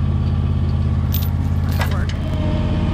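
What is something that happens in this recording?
A metal chain clinks and rattles.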